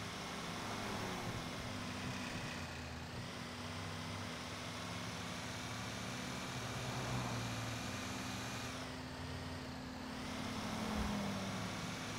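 A truck engine rumbles steadily as it drives along a road.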